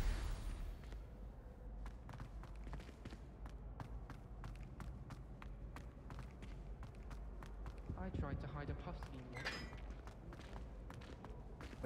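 Footsteps tap steadily on a stone floor.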